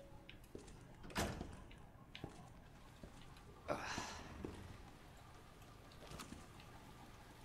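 Slow footsteps thud on a hard floor.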